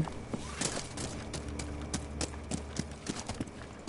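Footsteps tap on a hard surface.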